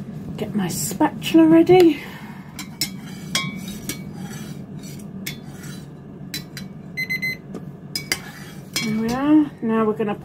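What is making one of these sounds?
A metal spoon scrapes and clinks against a pot.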